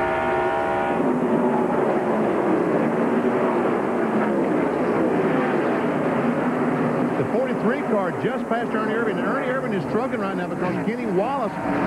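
Race cars roar past one after another.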